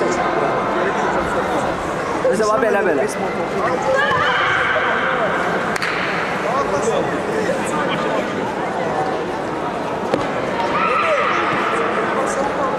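Many voices murmur and call out in a large echoing hall.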